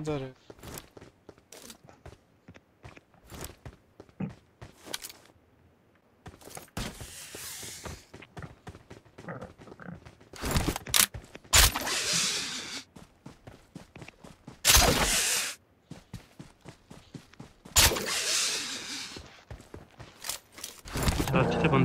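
Rapid gunshots crack in bursts.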